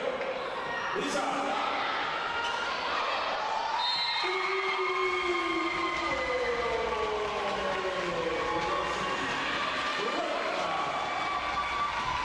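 Sneakers squeak sharply on a hard court floor in a large echoing hall.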